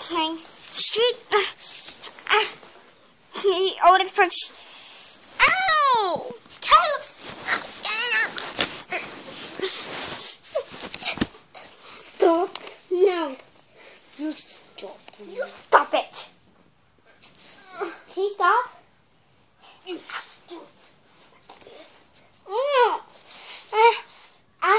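A young girl talks and squeals very close to the microphone.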